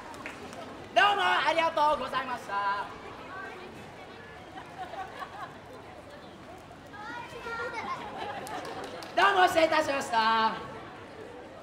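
A man shouts cheers loudly in long, drawn-out calls.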